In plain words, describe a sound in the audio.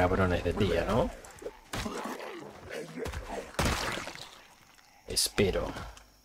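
Heavy blows thud in a close fight.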